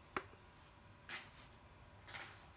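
A roll of tape rustles as it is handled.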